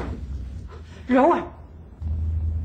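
An elderly woman calls out sharply.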